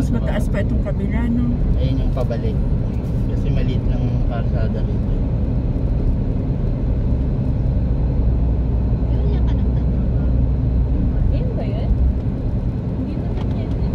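A car's engine hums steadily as it drives along a road.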